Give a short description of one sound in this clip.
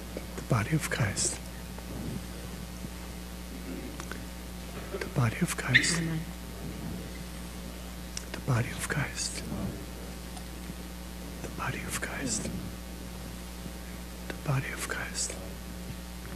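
A man speaks a few quiet words at a time, over and over, in a large echoing hall.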